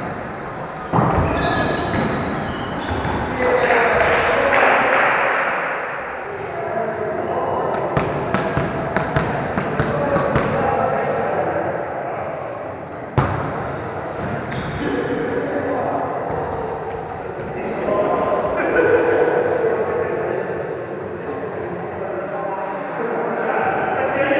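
A volleyball is struck with hands.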